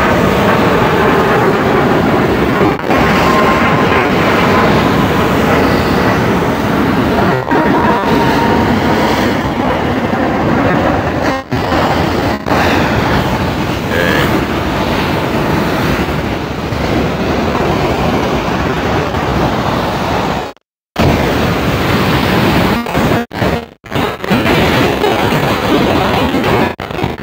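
Waves crash and roar steadily on rocks nearby.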